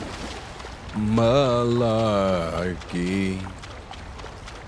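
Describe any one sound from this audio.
A young man calls out with animation close to a microphone.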